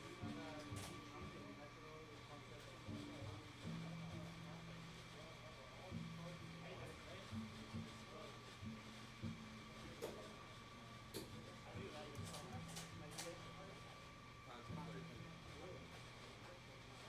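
A double bass plays a walking bass line.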